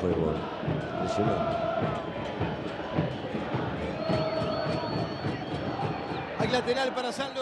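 A large stadium crowd chants and roars.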